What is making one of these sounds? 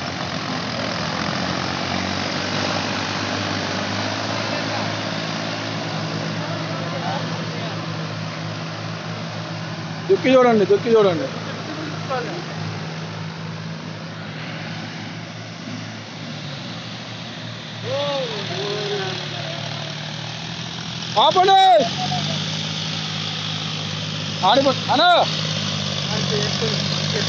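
Tractor engines rumble steadily nearby.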